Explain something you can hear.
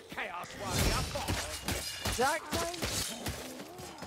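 Metal weapons clash and thud in close combat.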